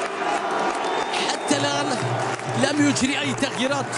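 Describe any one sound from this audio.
A large stadium crowd chants and cheers loudly.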